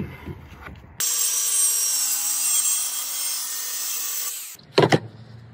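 A circular saw whines as it cuts through wood.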